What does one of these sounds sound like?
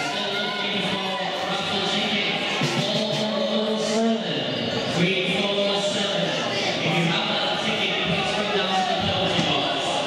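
Ice skates scrape and carve across an ice rink.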